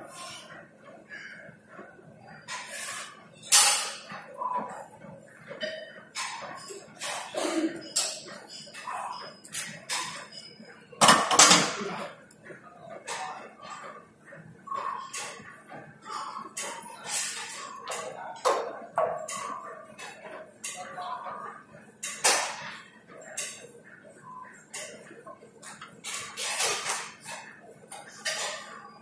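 Metal weights clank and rattle now and then.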